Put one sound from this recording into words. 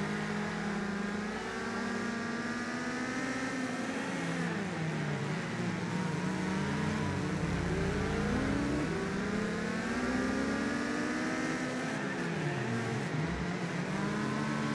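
A racing car engine revs hard, rising and falling in pitch as gears shift.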